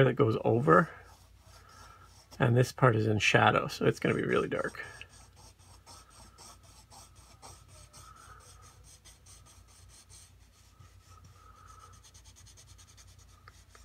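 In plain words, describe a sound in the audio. A pencil scratches softly across paper in quick strokes.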